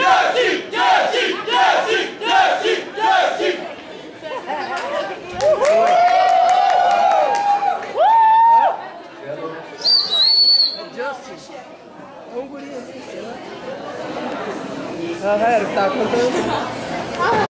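A young man shouts into a microphone over loudspeakers.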